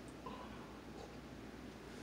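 A young woman sips a drink.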